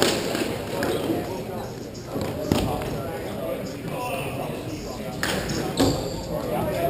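Hockey sticks clack and scrape on a hard floor, echoing in a large hall.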